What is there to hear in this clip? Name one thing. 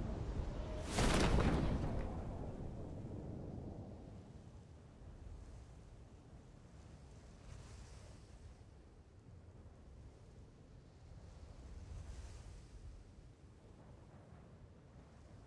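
Wind rushes loudly, then softens to a steady whoosh.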